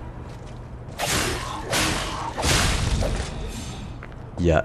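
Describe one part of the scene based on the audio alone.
Metal weapons clash and slash in a fight.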